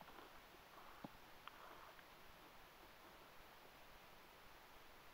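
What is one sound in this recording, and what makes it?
A hand rubs softly against an animal's fur.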